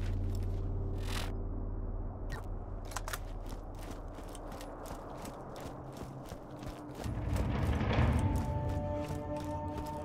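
Footsteps crunch on gravel at a steady pace.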